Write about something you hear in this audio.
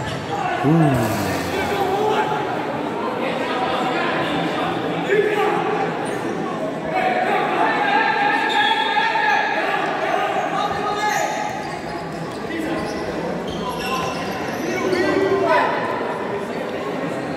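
Men shout to each other in a large echoing hall.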